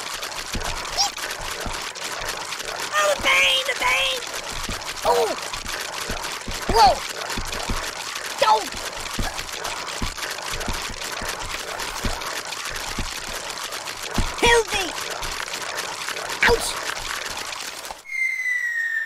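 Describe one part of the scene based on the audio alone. Wind-up chattering teeth clatter rapidly.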